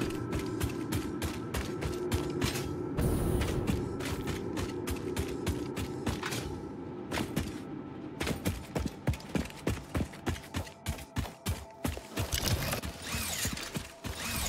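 Footsteps tread quickly and steadily on hard ground.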